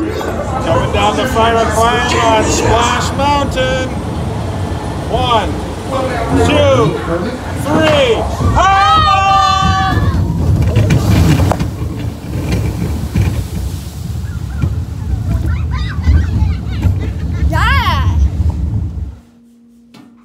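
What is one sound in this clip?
Rushing wind roars loudly past.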